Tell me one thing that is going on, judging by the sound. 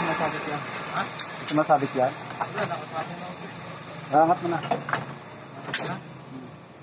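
Plastic engine parts click and knock under a hand.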